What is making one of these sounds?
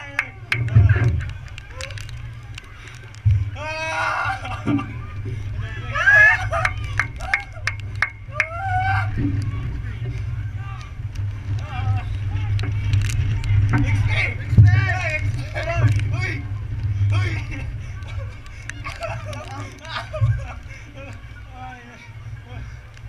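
Young men laugh loudly and shout close by.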